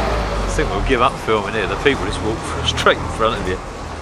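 A bus drives away down a street.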